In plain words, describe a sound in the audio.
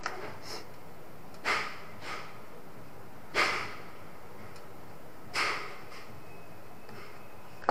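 A screwdriver scrapes and clicks against a metal screw.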